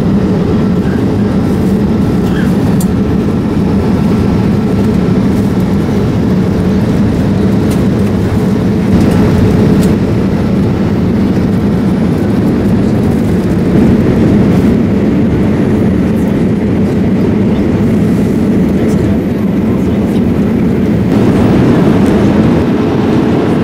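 A jet engine drones steadily inside an aircraft cabin.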